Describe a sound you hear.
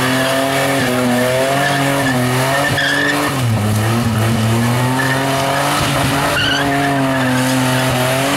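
Tyres screech and squeal as a car spins on the spot.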